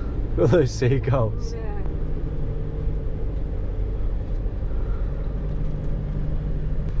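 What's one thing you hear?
An engine hums steadily inside a moving vehicle.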